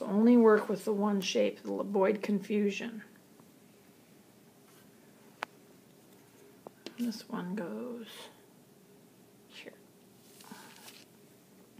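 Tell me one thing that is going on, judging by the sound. Paper pieces slide and tap softly on a wooden table.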